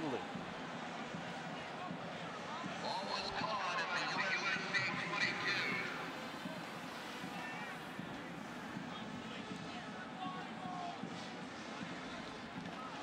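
A crowd murmurs and cheers in a large stadium.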